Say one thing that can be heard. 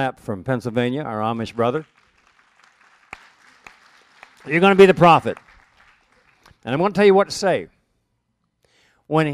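An elderly man speaks expressively into a close microphone, pausing between phrases.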